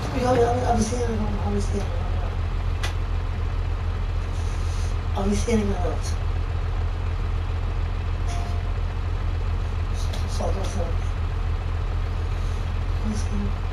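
A tractor engine hums low and steady.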